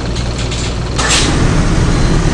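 Bus doors hiss and thud shut.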